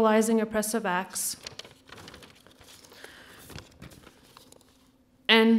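A woman speaks into a microphone, reading aloud.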